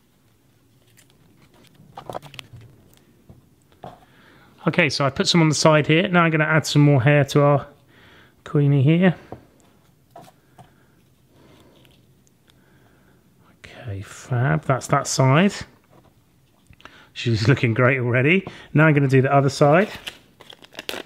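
Small wooden pieces click and tap together.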